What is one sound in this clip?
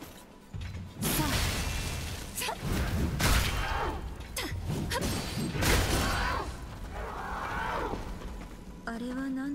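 Electric crackling and heavy blows burst out in a fight.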